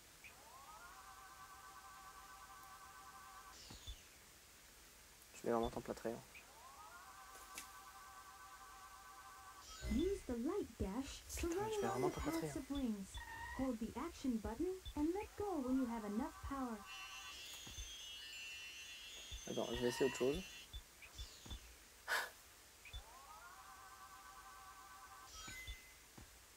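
A sparkling electronic chime rises in quick stepped tones.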